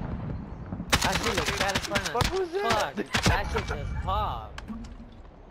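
Rapid gunshots crackle from a video game.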